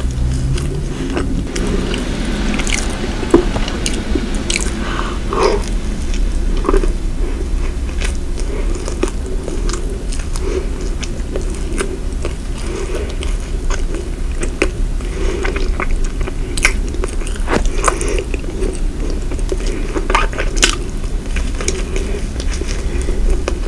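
A woman chews and crunches flaky pastry close to a microphone.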